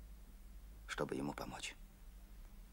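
A young girl speaks briefly.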